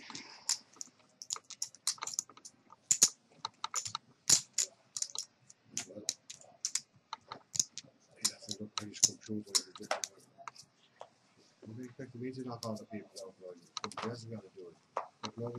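Poker chips click and clack on a table.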